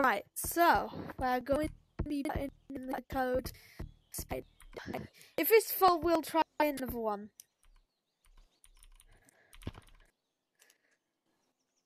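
Keys click softly as someone types on a keyboard.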